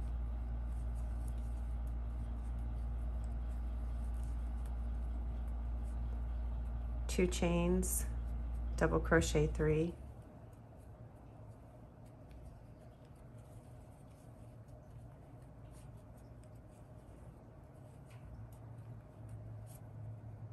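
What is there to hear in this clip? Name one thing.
A crochet hook softly scrapes and clicks against yarn.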